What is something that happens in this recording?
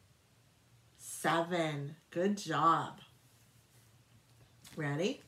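A middle-aged woman speaks calmly and clearly close to the microphone.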